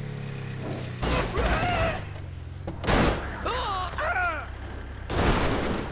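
A truck crashes and tumbles with heavy thuds.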